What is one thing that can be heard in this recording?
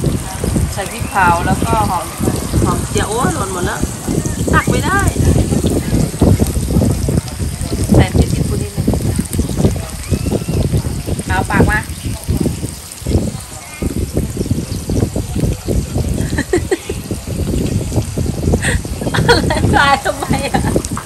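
A woman talks up close.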